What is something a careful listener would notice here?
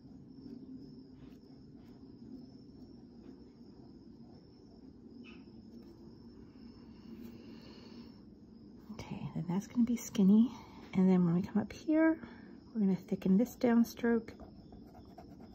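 A felt-tip pen scratches softly on paper.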